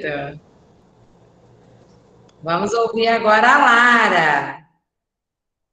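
A young woman speaks cheerfully into a microphone over an online call.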